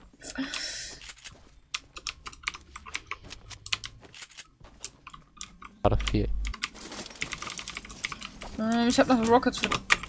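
Quick footsteps patter on hard ground and wooden floors.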